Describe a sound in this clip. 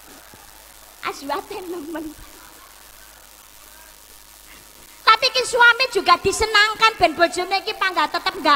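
A young woman speaks with animation through a microphone and loudspeaker.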